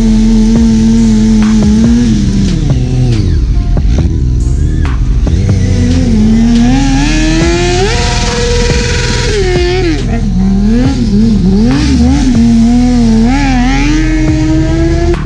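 A motorcycle engine revs up and down loudly, close by.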